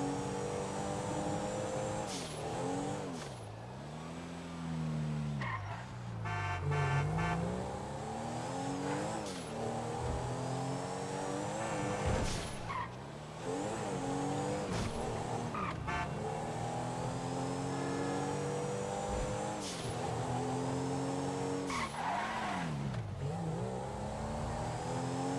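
A car engine revs hard, rising and dropping as it shifts gears.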